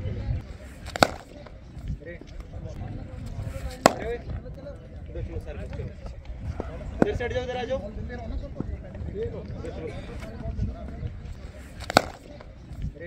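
A cricket bat strikes a ball with a sharp crack, several times.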